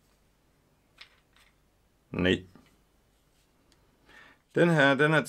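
Small plastic parts click in a man's hands.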